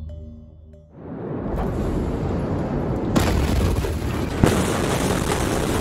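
A huge explosion booms and roars.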